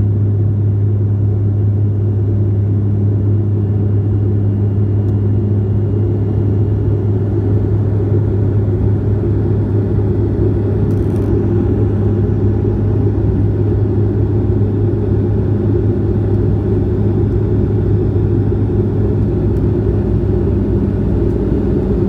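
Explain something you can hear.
An airliner's engines roar steadily from inside the cabin.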